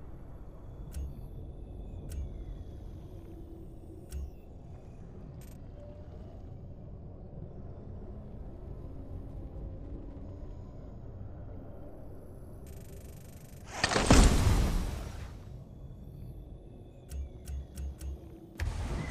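Short electronic menu clicks sound several times.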